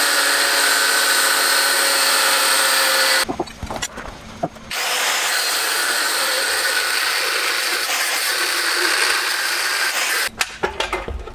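An angle grinder whines loudly as it cuts metal, with a short pause.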